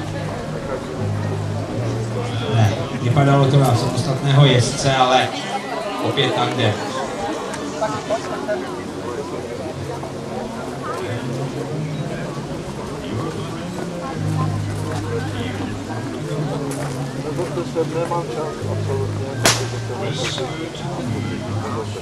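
A crowd of adults and children chatters outdoors at a distance.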